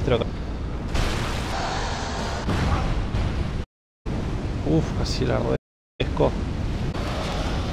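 A fiery explosion booms and roars.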